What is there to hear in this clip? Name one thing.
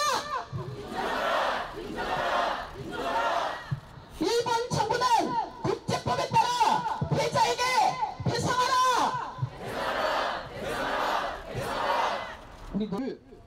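A crowd shouts together in loud bursts.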